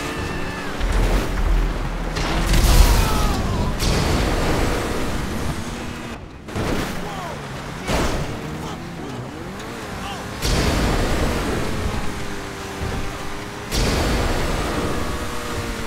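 A car engine roars as the car speeds along.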